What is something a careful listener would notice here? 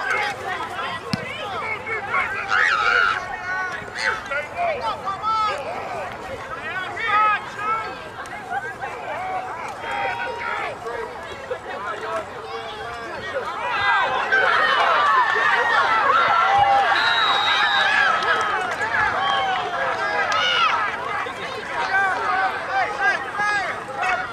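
A crowd of spectators cheers and shouts outdoors, growing louder as a play runs.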